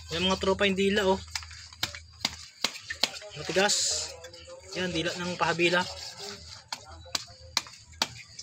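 A knife cuts and scrapes through raw meat and bone.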